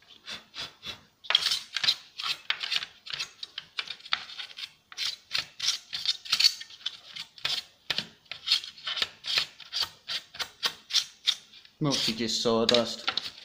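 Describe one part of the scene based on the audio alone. A brush scrubs metal parts in short, quick, repeated strokes.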